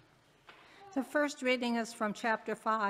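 An elderly woman reads aloud through a microphone.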